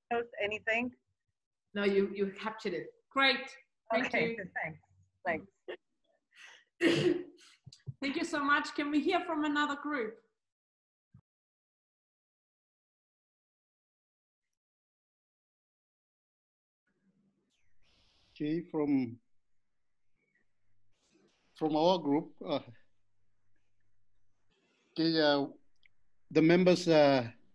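A woman speaks calmly over an online call, pausing now and then.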